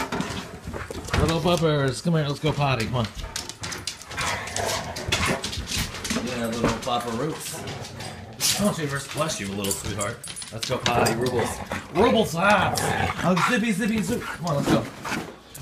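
Dogs whine and yelp excitedly.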